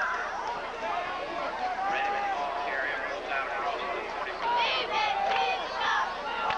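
A crowd cheers and shouts from a distance, outdoors.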